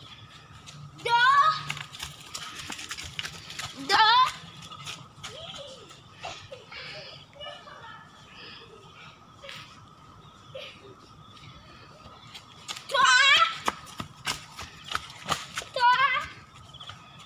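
A young girl shouts loudly nearby.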